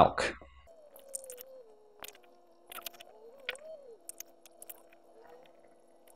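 Powder pours softly into a plastic jug.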